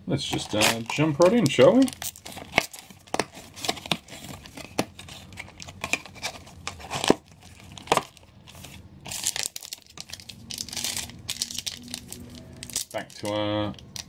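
Foil card packs crinkle and rustle as they are handled.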